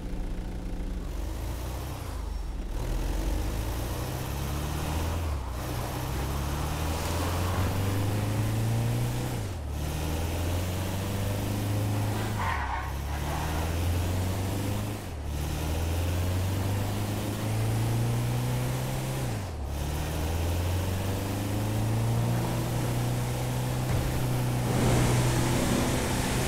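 A van engine revs up and drops as the gears shift, again and again.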